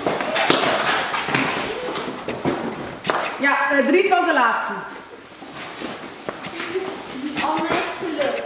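Children's feet scuffle and slap on a hard floor.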